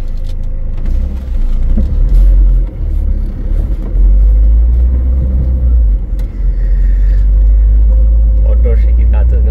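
Wind buffets loudly against a moving car.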